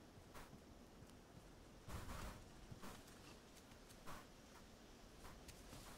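Soft footsteps patter on the ground.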